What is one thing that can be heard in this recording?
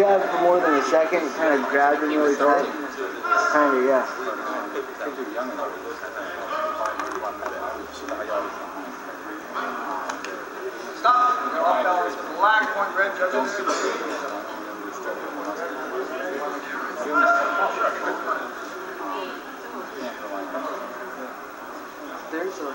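A man speaks calmly, heard through a television loudspeaker.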